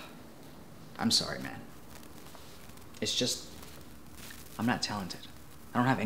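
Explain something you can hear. A young man speaks calmly nearby, in short phrases.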